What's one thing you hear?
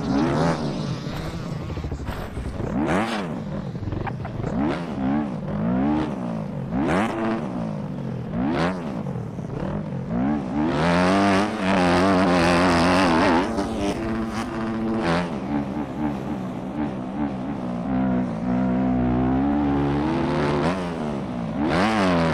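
A dirt bike engine revs up and down, rising and falling in pitch.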